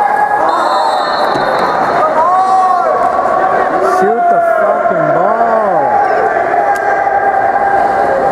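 Players shout to each other across a large echoing pool hall.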